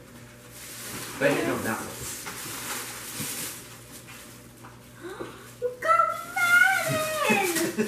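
Wrapping paper rustles as a boy tears it open.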